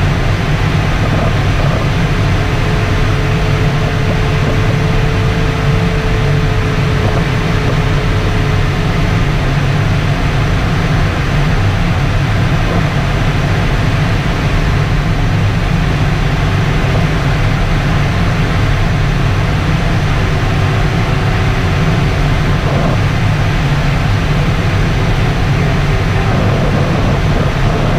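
Wind rushes steadily past a glider's canopy in flight.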